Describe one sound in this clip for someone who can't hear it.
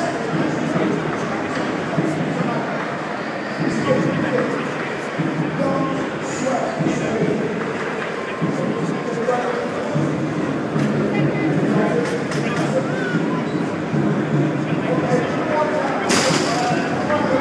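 A crowd murmurs and chatters in a large, echoing hall.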